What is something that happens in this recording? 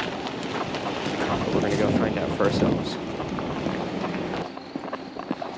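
A pickup truck's engine rumbles as it drives past close by.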